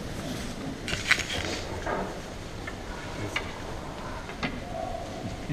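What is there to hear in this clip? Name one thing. Wooden staffs clack together.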